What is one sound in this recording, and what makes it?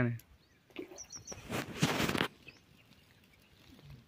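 Water splashes gently in a pond.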